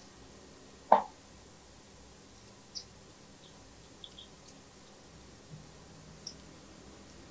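A sponge dabs softly on a soft surface.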